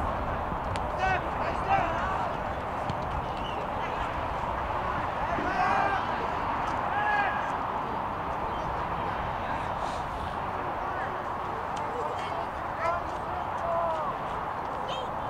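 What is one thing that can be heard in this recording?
Young men shout to each other across an open field, some distance away.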